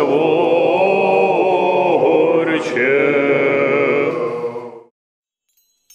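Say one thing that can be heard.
A group of men sing a slow chant together in an echoing hall.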